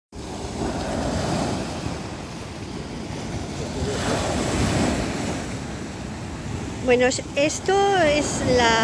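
Waves break and wash over a pebble beach.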